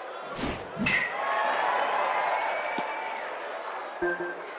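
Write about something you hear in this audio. A crowd cheers loudly and then fades.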